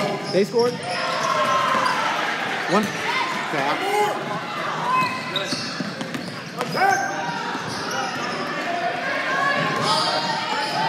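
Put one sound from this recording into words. Young players and spectators shout and call out across the court.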